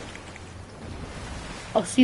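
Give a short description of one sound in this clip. Water splashes as a swimmer paddles along.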